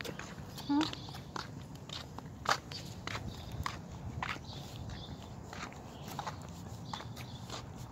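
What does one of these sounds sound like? Footsteps tap on a concrete sidewalk.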